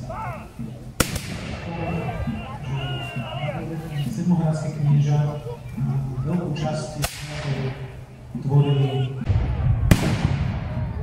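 Muskets fire loud sharp shots that echo outdoors.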